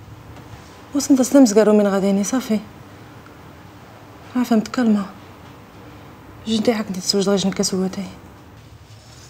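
A young woman speaks in a low, troubled voice nearby.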